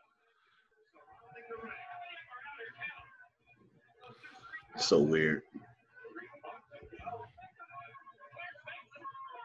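A second man talks calmly over an online call.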